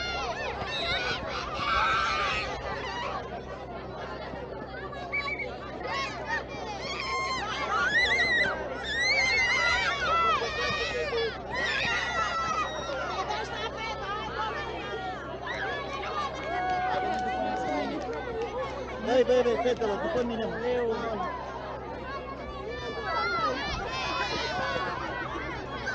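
A crowd of people chatters outdoors, with many voices overlapping at a distance.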